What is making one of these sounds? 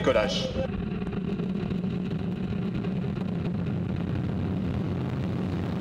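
A rocket engine roars with a deep, steady rumble.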